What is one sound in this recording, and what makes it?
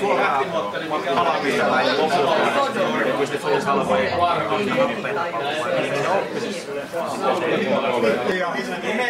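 Several men talk loudly over each other.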